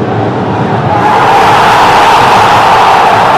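A large stadium crowd bursts into a loud roar.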